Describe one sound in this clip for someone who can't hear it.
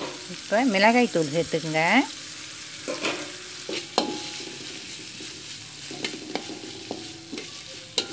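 Vegetables sizzle in a hot wok.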